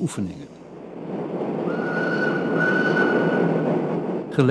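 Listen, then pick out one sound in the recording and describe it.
A steam train rumbles and clatters past on the tracks.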